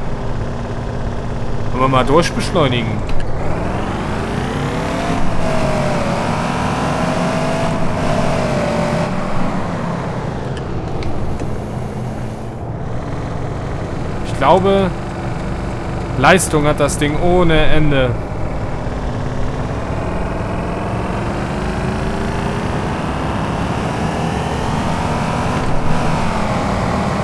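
A car engine drones, rising and falling in pitch as the car speeds up and slows down.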